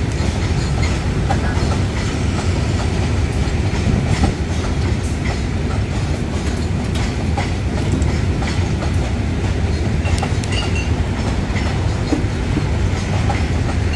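Tank wagons of a freight train rumble and clatter past on the rails close by.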